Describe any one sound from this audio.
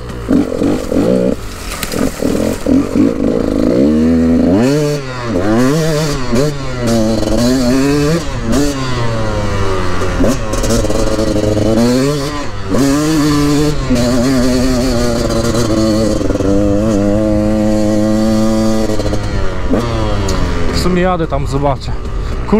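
A dirt bike engine revs and roars up and down.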